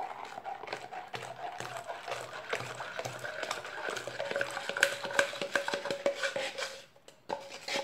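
Liquid pours and splashes into a bowl of frothy batter.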